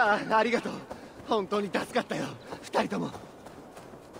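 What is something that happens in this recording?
A man speaks gratefully and with animation.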